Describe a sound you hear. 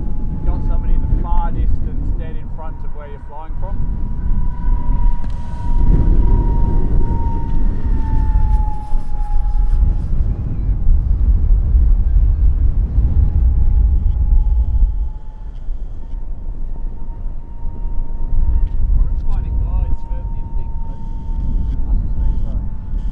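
A jet aircraft roars loudly overhead with a deep rumble.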